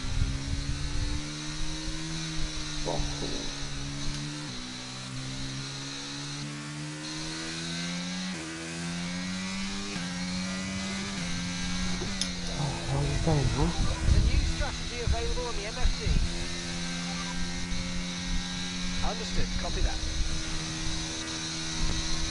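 A racing car engine whines steadily, shifting up through the gears.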